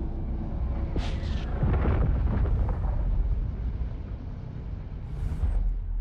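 Energy weapons fire with bright, hissing zaps.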